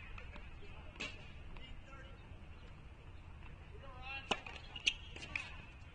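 A tennis ball is struck sharply by rackets.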